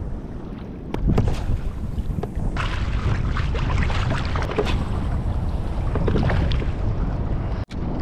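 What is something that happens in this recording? A man talks calmly close by, outdoors in wind.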